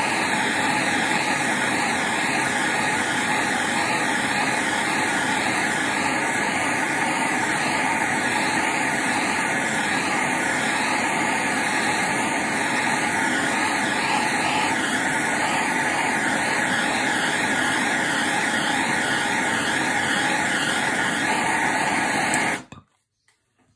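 A blowtorch roars steadily, then cuts off.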